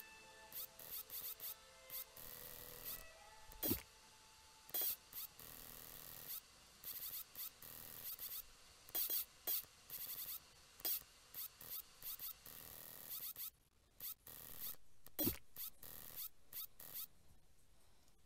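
A spring-loaded mechanical claw stretches out and snaps back with springy clanks.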